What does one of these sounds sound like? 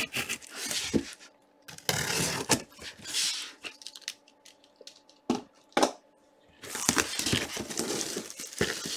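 A cardboard box bumps and taps against a table.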